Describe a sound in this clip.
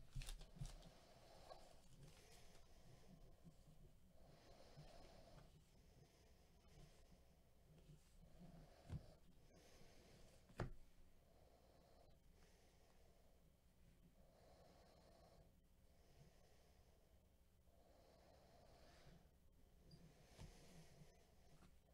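Trading cards slide and rustle against each other as they are shuffled.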